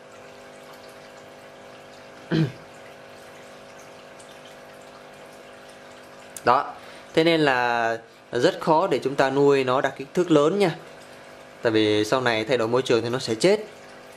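Air bubbles trickle softly up through water.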